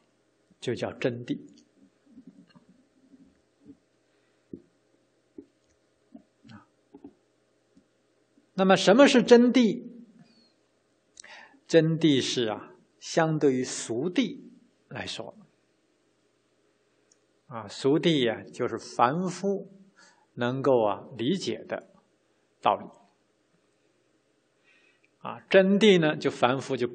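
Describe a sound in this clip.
A middle-aged man speaks calmly and slowly into a microphone, with long pauses.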